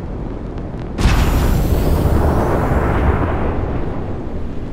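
A spaceship engine suddenly roars louder in a rushing boost, then eases off.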